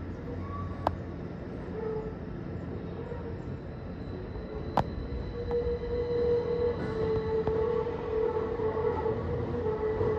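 A train rumbles slowly along the tracks in the distance.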